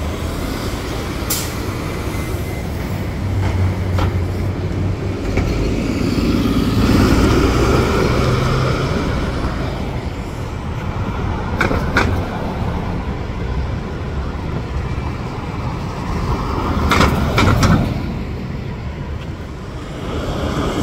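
A city bus engine rumbles as buses pull past on the street.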